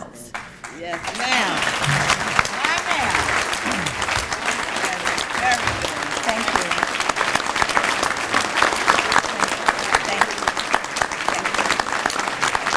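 A large crowd applauds steadily in a big room.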